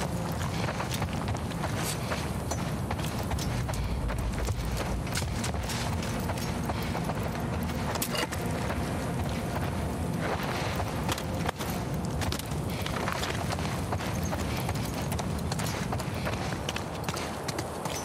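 Footsteps patter quickly on a hard floor.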